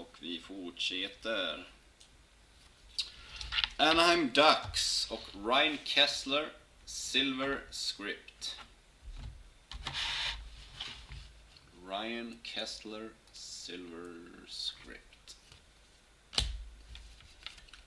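Stiff cards shuffle and slide against each other.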